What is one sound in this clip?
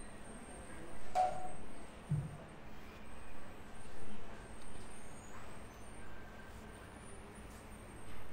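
An elderly man speaks slowly and calmly into a microphone, heard through a loudspeaker.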